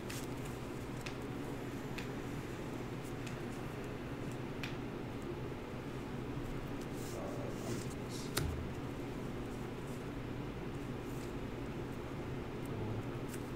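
Cards tap and slide on a table.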